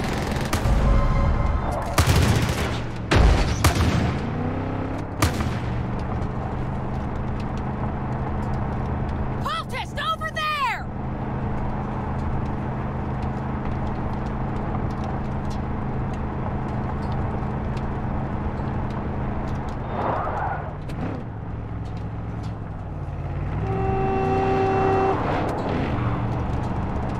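A car engine drones as the car drives.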